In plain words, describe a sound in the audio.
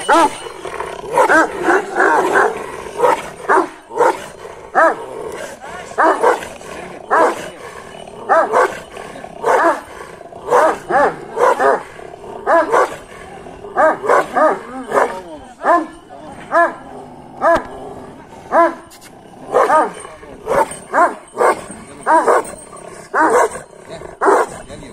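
Large dogs bark loudly and repeatedly close by, outdoors.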